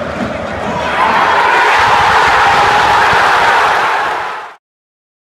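A large crowd roars and cheers in celebration.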